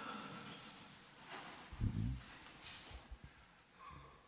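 Footsteps shuffle across a stone floor in a large echoing hall.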